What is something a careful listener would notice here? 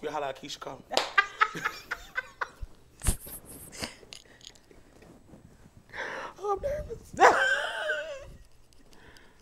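A woman laughs loudly nearby.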